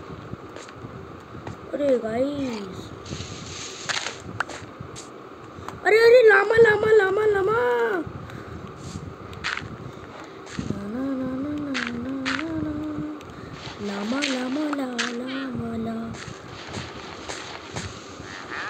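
Dirt crunches in short bursts as blocks are dug.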